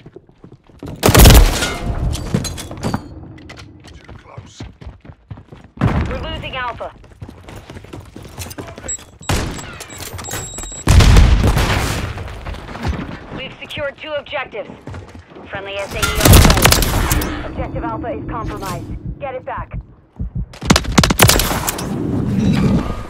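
Gunfire bangs out in short, loud bursts.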